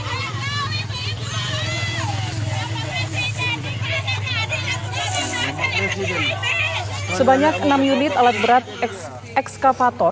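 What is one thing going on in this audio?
A crowd of men shout and argue agitatedly outdoors.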